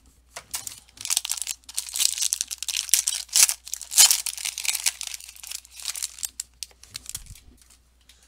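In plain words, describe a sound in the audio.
Foil wrapping crinkles and tears loudly.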